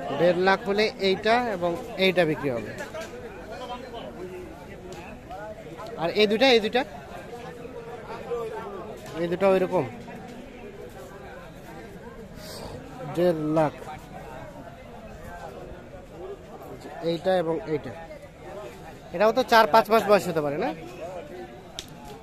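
Men talk nearby in short bursts outdoors.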